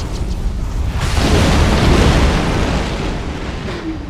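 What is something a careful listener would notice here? A loud blast bursts and rumbles, then fades.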